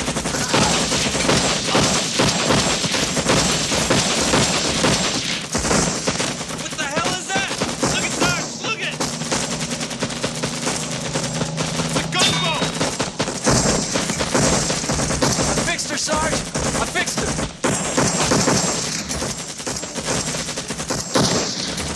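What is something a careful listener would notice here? Rifles and machine guns fire in rapid bursts.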